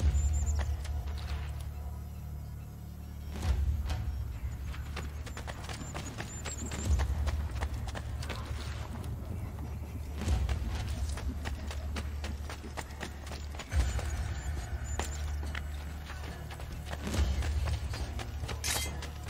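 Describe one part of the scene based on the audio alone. Footsteps patter quickly on hard ground as someone runs.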